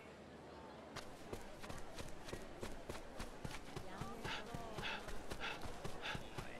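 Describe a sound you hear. Footsteps run quickly on hard ground.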